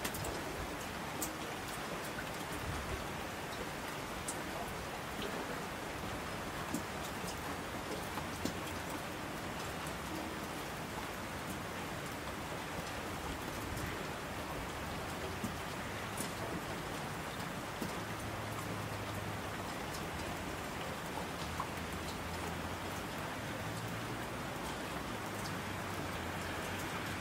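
Mountain streams rush and roar down the slopes.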